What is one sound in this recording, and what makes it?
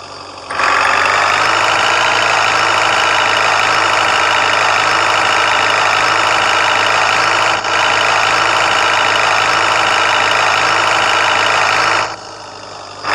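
A van engine drones steadily.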